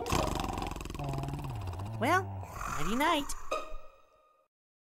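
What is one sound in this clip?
A cartoon duck speaks in a squeaky, cheerful voice.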